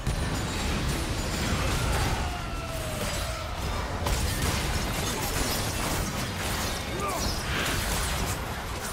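Magic spells and weapon blows crackle and clash in a busy fight.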